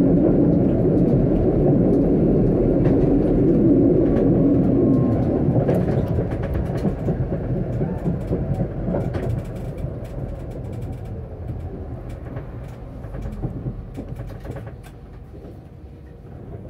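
Tram wheels click and clatter over rail joints and switches.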